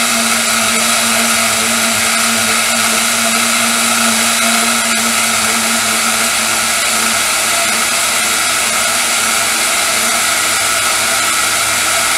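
A band saw whirs steadily as it cuts through foam.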